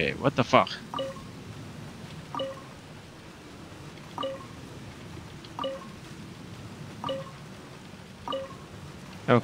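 A stone mechanism turns with a short ringing clunk, again and again at steady intervals.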